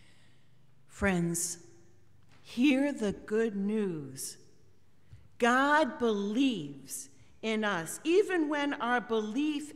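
A woman speaks calmly into a microphone, reading out.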